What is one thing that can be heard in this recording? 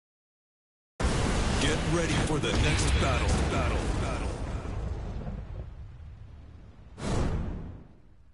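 A fiery whoosh and rumble swells and fades.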